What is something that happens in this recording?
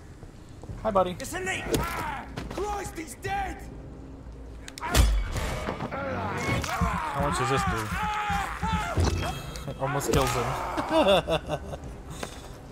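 Heavy blows thud and strike during a scuffle.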